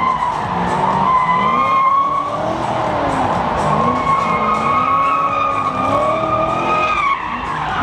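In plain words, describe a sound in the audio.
Tyres screech long and shrill on the track.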